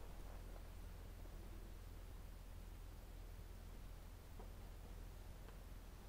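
A woman reads aloud softly at a distance in an echoing hall.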